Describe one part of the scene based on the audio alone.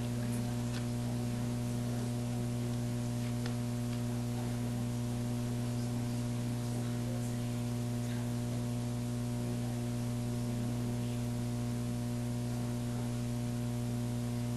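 Papers rustle softly.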